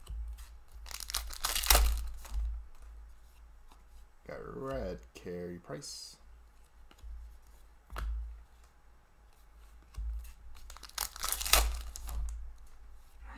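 Plastic wrappers crinkle and rustle.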